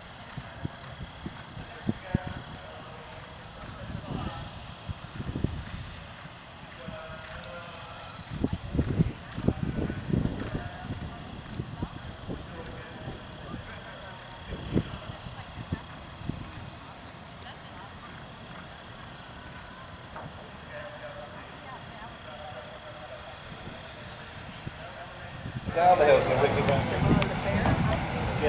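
Horse hooves thud on grass at a gallop.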